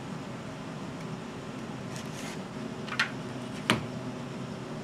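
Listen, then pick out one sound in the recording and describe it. A box knife clicks as its blade slides out.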